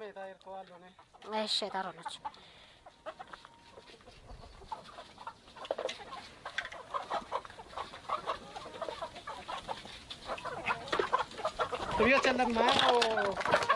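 Chickens cluck and scratch about.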